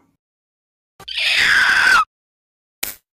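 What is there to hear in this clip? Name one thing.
A high cartoonish voice shouts excitedly.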